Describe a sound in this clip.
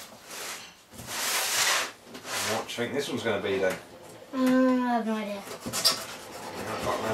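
A cardboard box rustles and scrapes as a child rummages in it.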